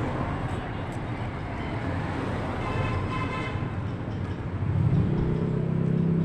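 Footsteps walk along a wet street.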